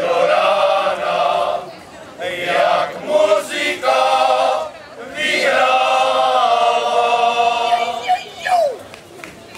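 A choir of men sings together outdoors.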